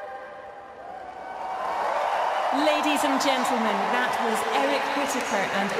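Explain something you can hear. A large crowd cheers and applauds in a huge echoing arena.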